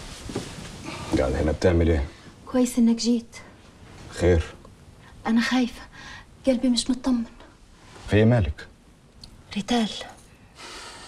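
A man speaks firmly nearby.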